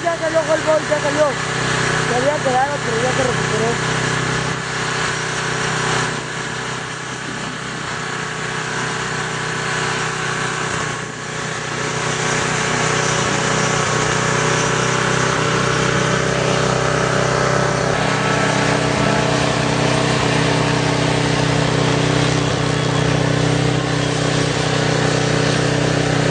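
A rally car engine roars and revs as the car speeds along a dirt road.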